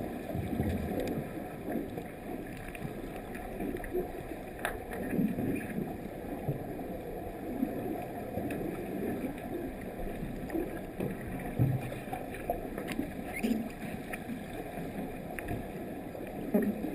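Water churns and swirls with a muffled underwater rumble as swimmers kick.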